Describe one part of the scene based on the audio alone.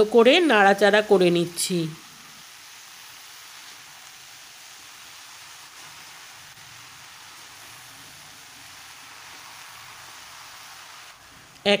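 A metal spoon scrapes and stirs vegetables in a pan.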